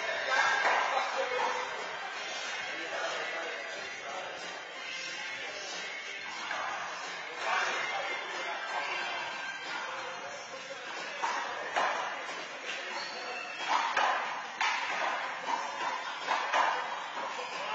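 A handball smacks against a wall in an echoing court.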